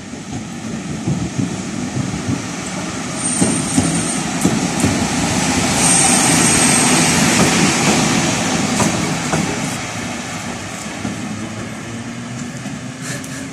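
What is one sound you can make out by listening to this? An electric locomotive rumbles past close by on the rails and fades away.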